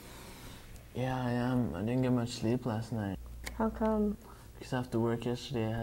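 A young man talks casually, close by.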